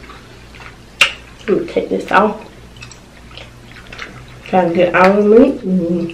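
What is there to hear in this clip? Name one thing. Lobster shell cracks and crunches as it is pulled apart.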